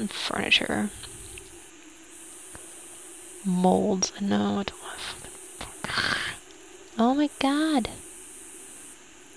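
A menu clicks softly as items are selected.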